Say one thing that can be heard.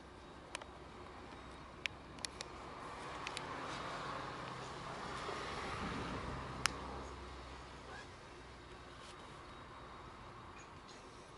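A diesel-electric locomotive rumbles in the distance.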